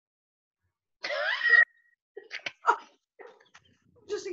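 A second woman laughs over an online call.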